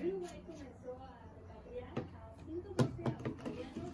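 Paint bottles knock on a table.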